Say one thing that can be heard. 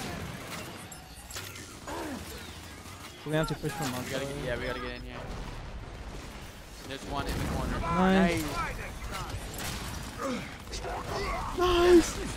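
Shotgun blasts ring out in a video game's gunfight.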